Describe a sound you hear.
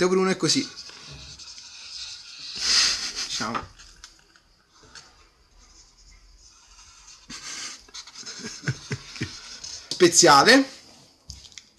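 A felt-tip marker squeaks and scratches across paper.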